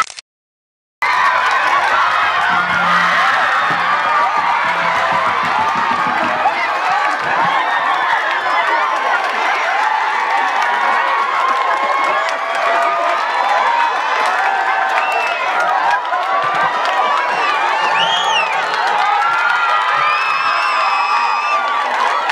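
A crowd of women and men cheers loudly outdoors.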